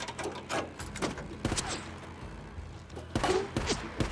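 A car trunk lid clunks open.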